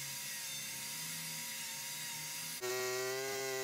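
An angle grinder whines steadily against wood.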